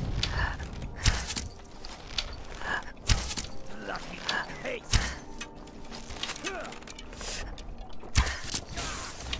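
A bow string twangs as arrows are shot, again and again.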